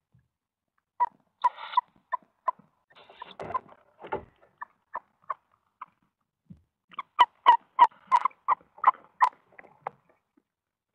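Owl chicks chirp and squeak in quick bursts close by.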